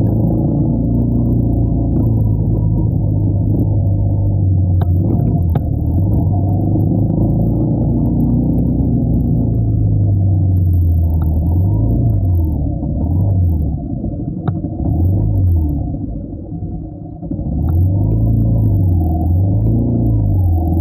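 A motorcycle engine hums steadily up close and revs up and down.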